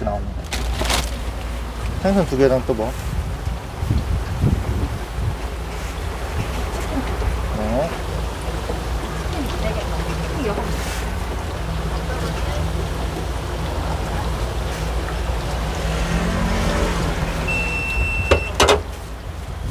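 Hot oil sizzles and crackles in a deep fryer.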